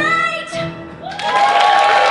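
Two women sing together through microphones.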